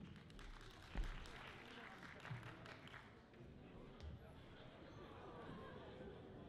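Men and women talk quietly in the distance in a large echoing hall.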